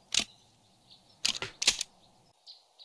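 A shotgun is reloaded with a few metallic clicks.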